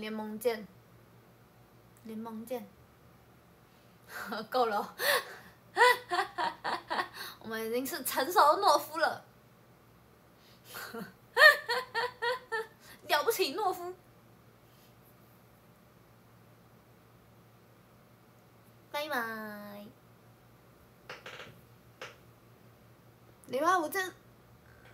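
A young woman talks cheerfully and close up, in bursts with pauses.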